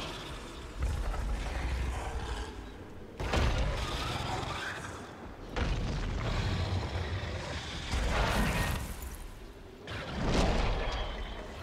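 A huge beast's wings beat with deep whooshes.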